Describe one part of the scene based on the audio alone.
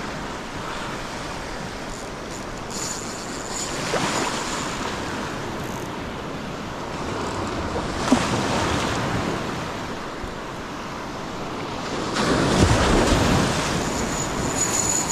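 Water laps and splashes steadily.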